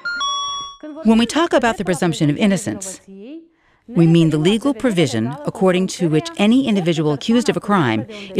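A woman speaks calmly and clearly into a nearby microphone.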